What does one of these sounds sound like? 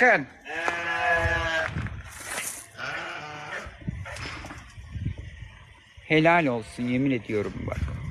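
Goats bleat loudly and close by.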